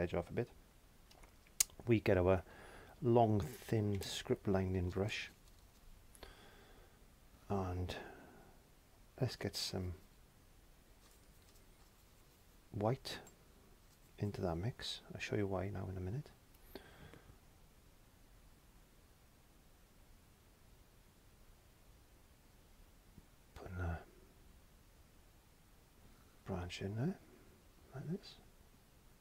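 An elderly man talks calmly into a close microphone, in short bursts with pauses.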